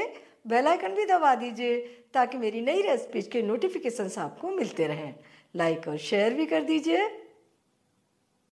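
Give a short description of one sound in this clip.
An elderly woman speaks warmly and clearly into a microphone, close by.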